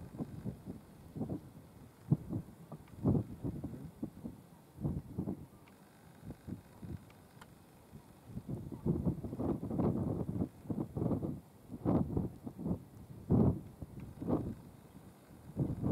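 Wind blows outdoors in strong, buffeting gusts.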